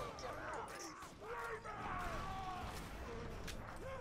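A weapon clicks and clacks as it reloads.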